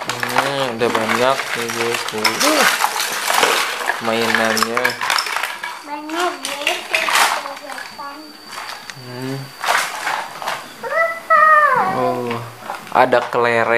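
Plastic toys clatter and rattle together.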